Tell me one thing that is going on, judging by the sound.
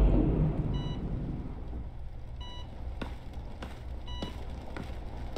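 A hospital monitor beeps at a steady pace.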